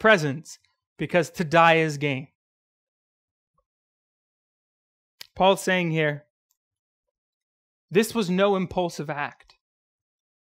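A man speaks slowly and expressively into a microphone, pausing between phrases.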